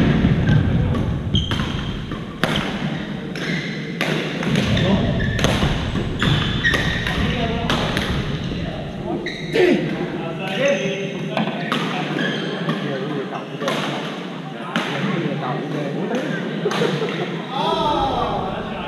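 Shuttlecocks are struck with rackets in sharp snaps.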